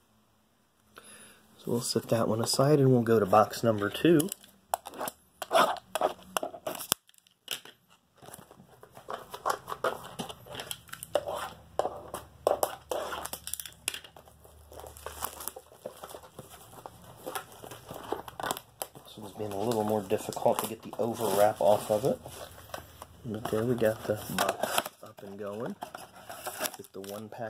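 Card packs and foil wrappers rustle and crinkle in hands.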